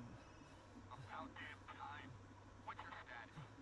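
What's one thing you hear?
A man talks quietly into a microphone, close by.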